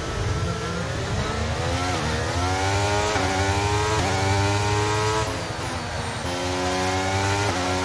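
A racing car engine screams at high revs, rising in pitch and dropping sharply with each gear shift.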